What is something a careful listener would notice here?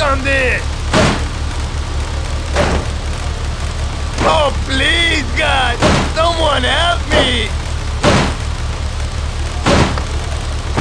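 A man's fists bang repeatedly against a car's metal body.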